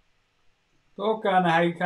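A middle-aged man speaks calmly into a microphone, close by.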